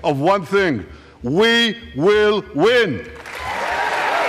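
A man speaks forcefully into a microphone in a large hall.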